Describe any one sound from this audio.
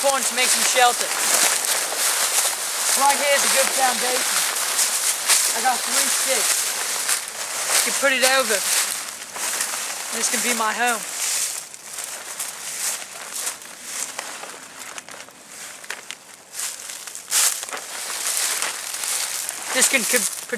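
Dry leaves crunch underfoot.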